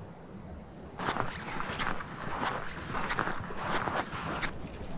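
Skis swish and crunch through deep snow.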